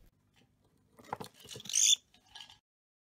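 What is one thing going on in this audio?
A cockatiel chirps shrilly.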